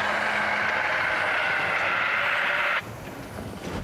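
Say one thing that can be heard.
A fire extinguisher sprays with a loud, steady hiss, then stops abruptly.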